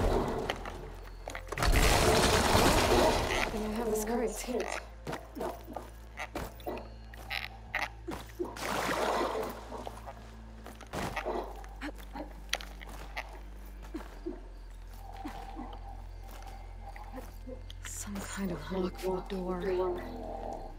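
Footsteps scuff and tap on stone.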